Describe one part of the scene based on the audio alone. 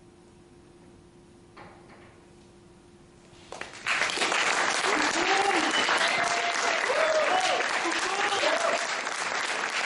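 A violin plays.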